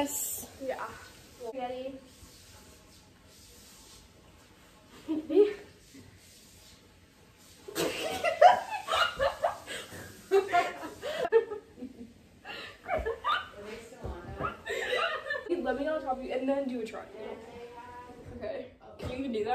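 Young girls talk and laugh close by.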